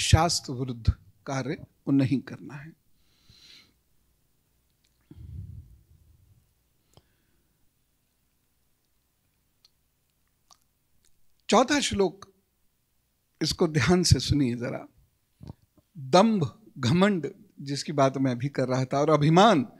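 A middle-aged man speaks into a microphone with animation, pausing often.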